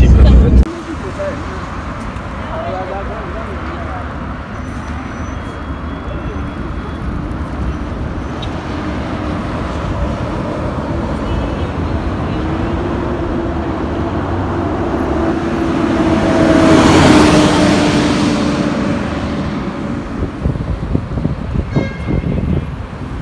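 Traffic hums steadily on a wide road outdoors.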